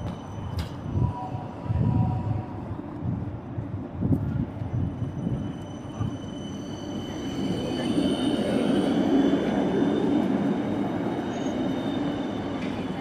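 A tram rolls by slowly on its rails.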